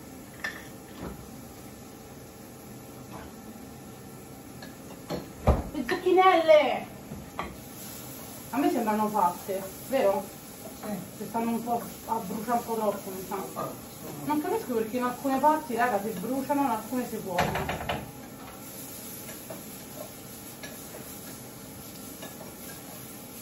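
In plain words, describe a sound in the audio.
Dishes clink at a sink.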